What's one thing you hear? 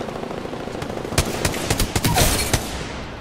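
Rapid gunfire cracks close by.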